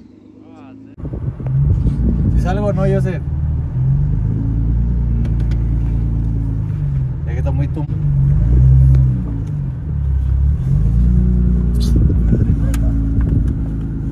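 A car engine rumbles inside the car as it drives.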